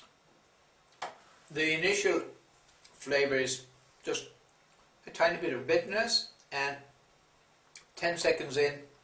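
A middle-aged man talks animatedly, close by.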